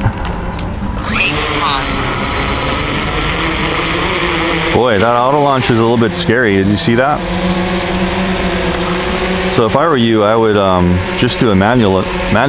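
A small drone's propellers spin up and whir loudly, rising and falling in pitch as it lifts off and hovers nearby.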